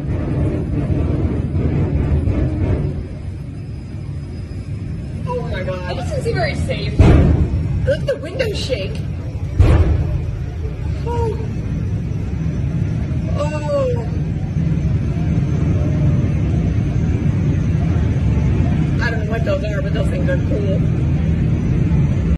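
Race car engines roar loudly nearby.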